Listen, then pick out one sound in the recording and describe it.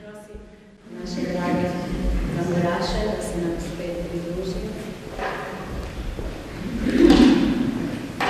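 A woman sings.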